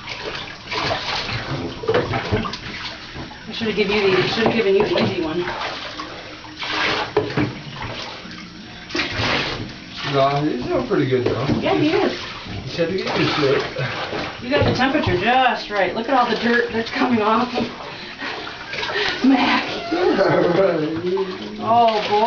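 Water pours from a cup into a bathtub.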